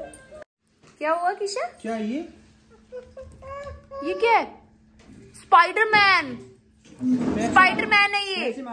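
A small child squeals and shouts excitedly close by.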